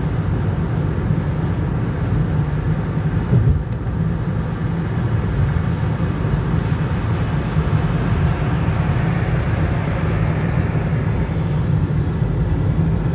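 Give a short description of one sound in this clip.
A car engine hums steadily from inside while driving at speed.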